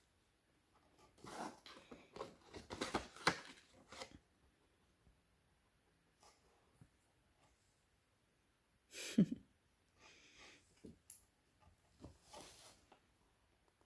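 Stiff cards rustle and slide as they are handled.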